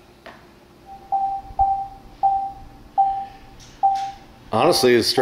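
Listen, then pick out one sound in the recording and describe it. Short electronic beeps sound from a television, one after another.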